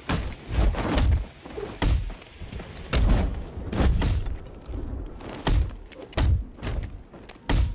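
Heavy punches and kicks thud in quick bursts.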